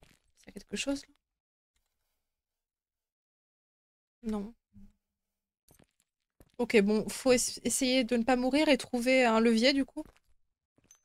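A young woman speaks with animation into a microphone.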